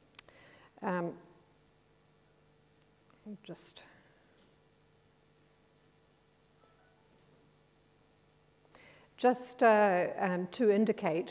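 A woman speaks calmly into a microphone, with long pauses.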